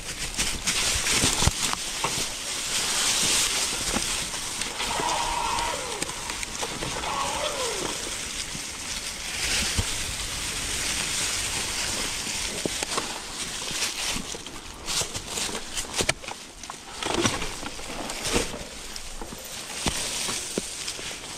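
Bicycle tyres crunch over dry leaves and stones on a forest trail.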